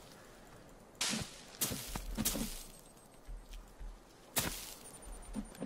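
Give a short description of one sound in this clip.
An axe swishes through the air several times.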